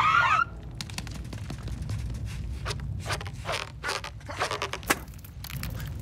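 Quick footsteps patter on rock.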